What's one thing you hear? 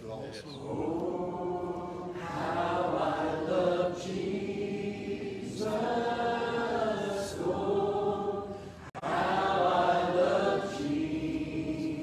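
A group of people sings together.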